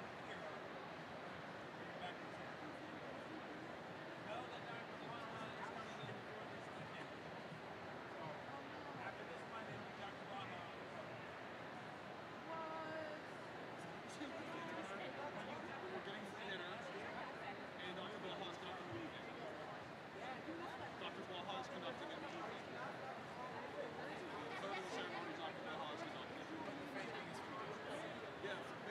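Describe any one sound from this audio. A large crowd murmurs and chatters in a big echoing arena.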